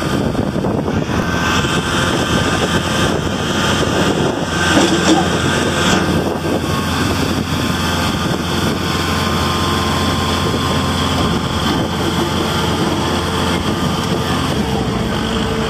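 A loader's hydraulics whine as the arm rises and lowers.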